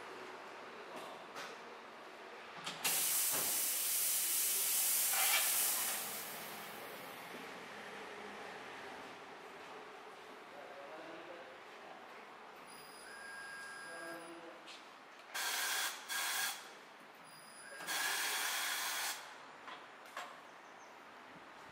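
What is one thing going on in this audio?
A tyre thumps as it is pushed onto the machine.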